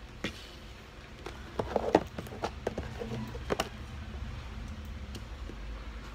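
A cardboard box scrapes across a wooden floor.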